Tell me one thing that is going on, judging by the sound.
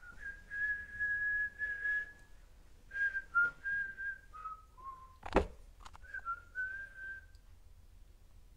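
A man whistles a tune close by.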